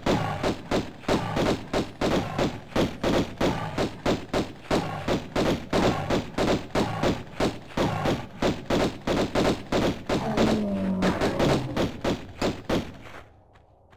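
Pistol shots ring out in rapid, steady succession, echoing off stone walls.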